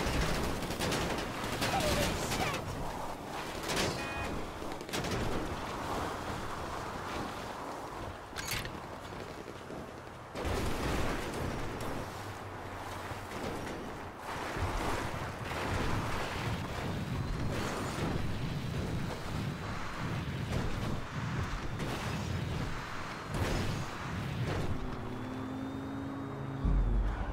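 Car tyres rumble over rough gravel.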